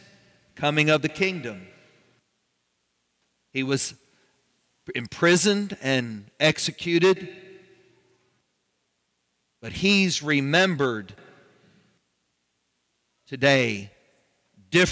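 A man speaks calmly in phrases with pauses, heard through a microphone in a large echoing hall.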